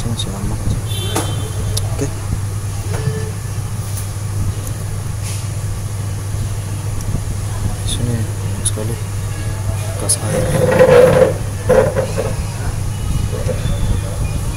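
Small electronic parts click and tap as they are handled up close.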